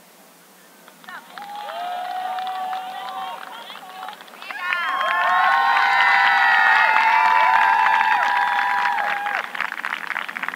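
A crowd cheers and whistles loudly outdoors.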